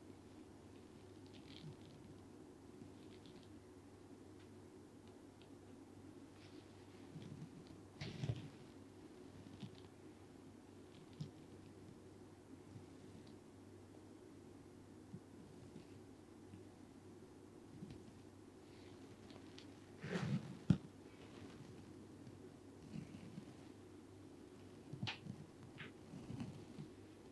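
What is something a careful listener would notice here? Fingers softly rustle and scratch through hair, close by.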